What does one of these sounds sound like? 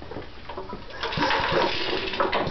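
A machine motor whirs.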